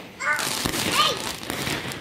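Fireworks pop in the distance.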